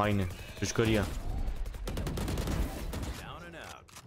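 A rifle fires rapid shots in a video game.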